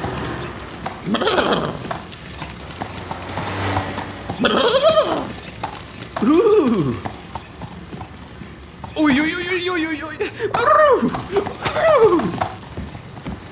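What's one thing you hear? Ponies whinny and neigh loudly several times.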